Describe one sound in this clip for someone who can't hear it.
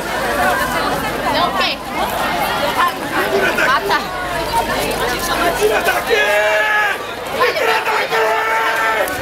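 A crowd of men and women talk and call out all around, close by.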